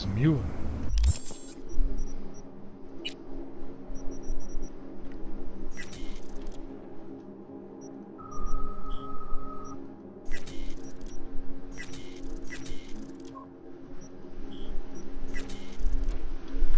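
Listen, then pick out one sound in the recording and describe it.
Short electronic menu clicks and beeps sound now and then.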